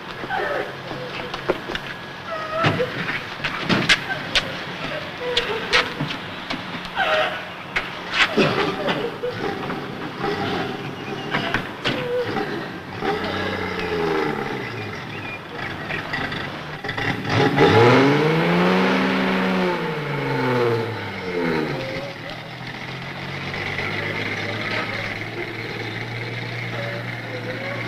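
A car engine idles and rumbles nearby.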